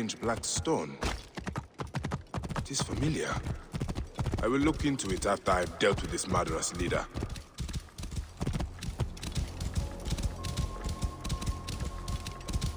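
A horse's hooves thud quickly and steadily on dry ground.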